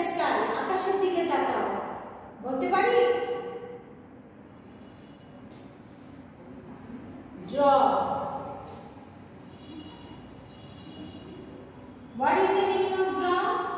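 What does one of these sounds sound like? A woman speaks clearly and slowly, close by, as if teaching.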